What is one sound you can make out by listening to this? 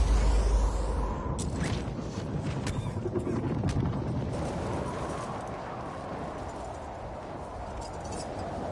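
Wind rushes loudly past during a parachute descent.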